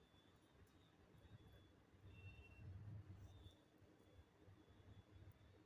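A soft brush lightly sweeps paste over a small metal figure.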